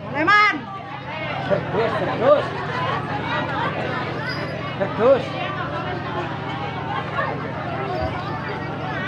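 A crowd of children chatters and calls out nearby outdoors.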